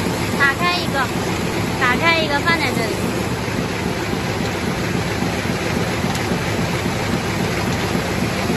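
A paper bag making machine runs at high speed with a dense mechanical clatter.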